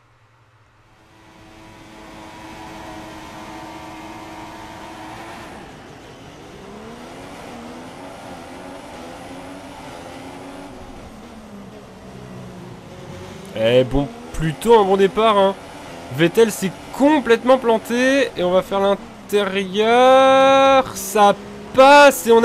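A racing car engine idles, then revs to a high scream as it accelerates and shifts gears.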